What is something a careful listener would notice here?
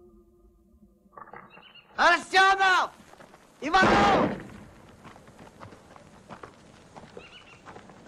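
Footsteps crunch on dry dirt as several men walk.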